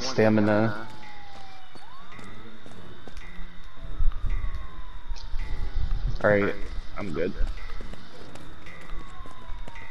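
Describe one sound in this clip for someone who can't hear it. Footsteps run on a hard road.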